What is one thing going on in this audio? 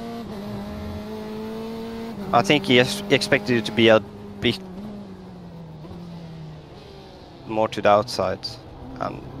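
A race car engine drones steadily, shifting pitch as it changes gear.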